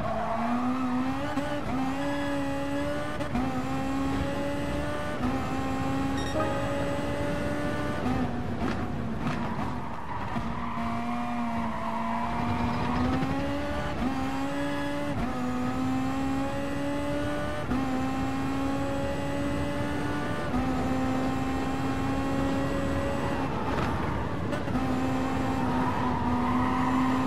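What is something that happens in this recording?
A racing car engine revs hard, its pitch climbing through each gear and dropping at every gear change.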